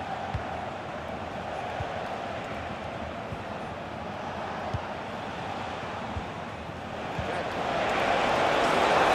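A large stadium crowd roars steadily and swells louder.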